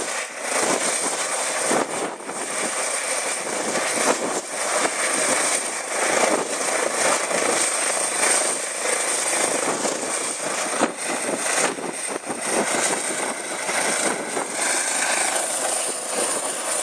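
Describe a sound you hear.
Helicopter rotor blades whirl and thump.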